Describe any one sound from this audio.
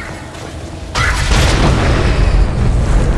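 Steam hisses loudly from vents.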